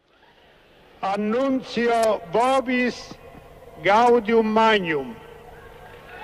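An elderly man speaks slowly and solemnly through a microphone and loudspeakers, echoing outdoors.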